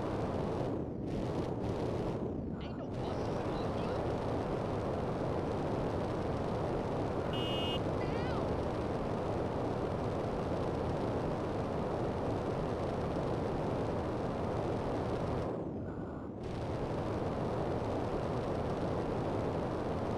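A jetpack roars with a rushing thrust.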